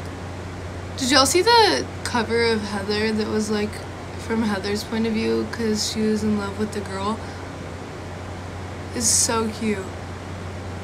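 A young woman talks casually close to a phone microphone.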